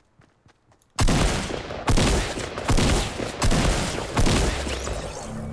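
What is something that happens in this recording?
Loud gunshots blast in quick succession.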